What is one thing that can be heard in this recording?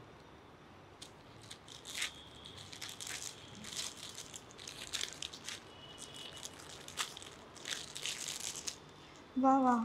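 Plastic wrapping crinkles and rustles as it is opened.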